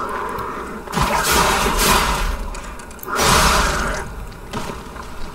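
A burst of fire crackles and bursts against an enemy.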